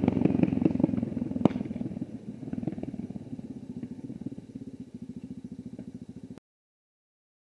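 A motorcycle engine drones and fades into the distance.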